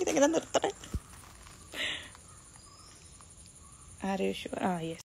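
A young woman speaks close to a phone microphone, chatting warmly.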